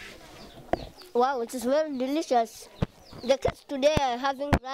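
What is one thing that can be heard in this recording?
A young boy speaks into a microphone with excitement, close by.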